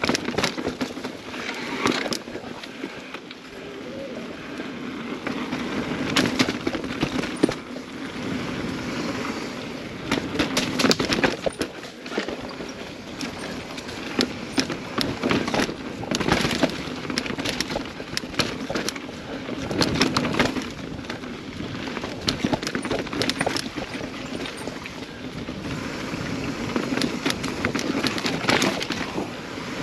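A mountain bike rattles and clunks over rocks and roots.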